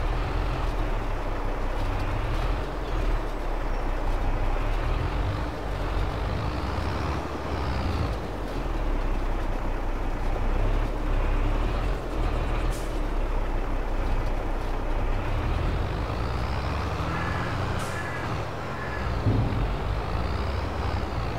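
A tractor engine idles with a low, steady rumble.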